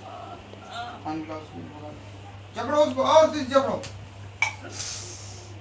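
A woman sobs and cries out nearby.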